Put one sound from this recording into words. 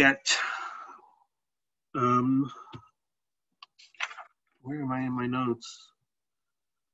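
A man speaks calmly into a microphone, in short phrases.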